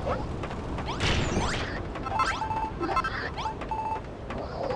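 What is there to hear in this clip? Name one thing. Blows thud and clash in a noisy fight.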